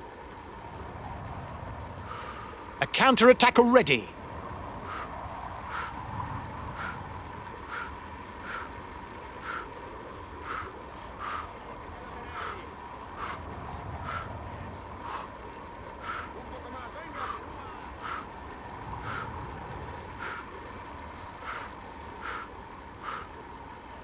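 Bicycle tyres hum steadily on asphalt.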